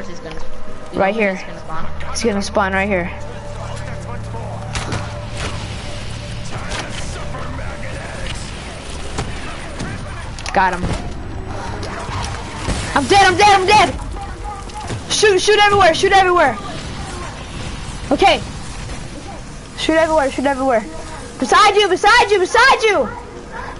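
A boy talks with excitement close to a microphone.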